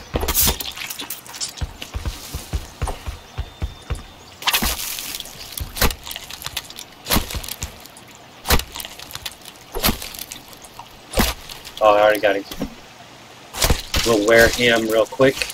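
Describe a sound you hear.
A blade hacks into flesh with repeated wet thuds.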